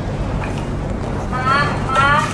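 A young woman speaks calmly close to the microphone.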